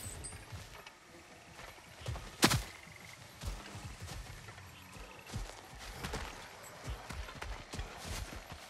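Heavy footsteps thud and crunch on leaves and earth.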